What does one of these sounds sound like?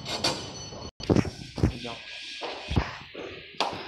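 Footsteps thud on concrete.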